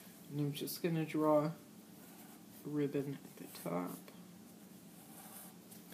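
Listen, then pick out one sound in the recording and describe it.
A marker pen scratches softly on paper.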